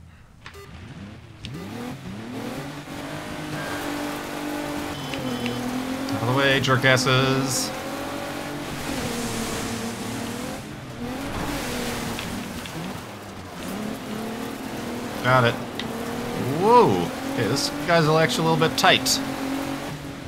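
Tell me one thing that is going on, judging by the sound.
Racing truck engines roar and rev.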